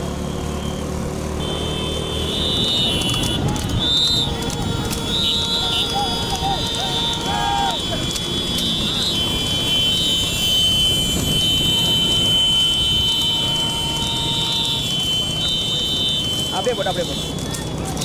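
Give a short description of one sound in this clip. Motorbike engines hum steadily nearby.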